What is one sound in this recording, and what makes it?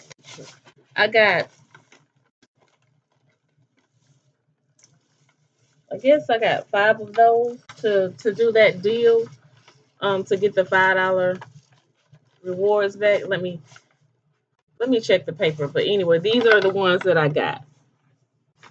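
A woman talks close to the microphone with animation.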